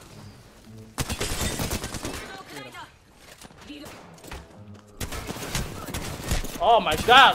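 Gunshots rattle in rapid bursts.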